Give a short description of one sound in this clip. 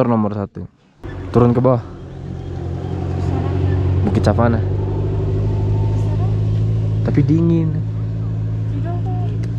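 A car engine hums steadily nearby.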